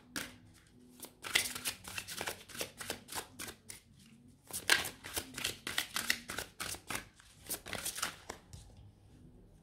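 Playing cards are shuffled with quick, rapid flicking clicks.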